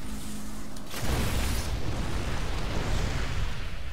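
Flames burst with a loud roar.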